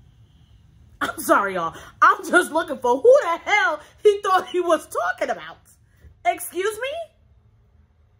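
A young woman speaks close to a microphone with great animation and exaggerated expression.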